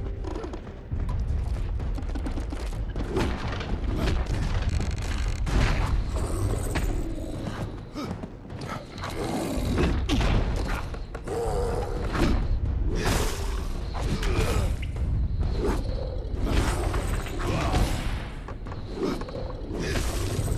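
A sword slashes and clangs against a creature in rapid blows.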